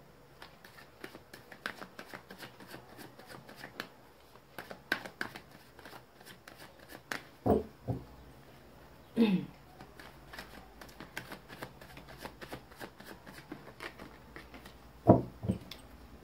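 Playing cards riffle and flick softly as they are shuffled by hand.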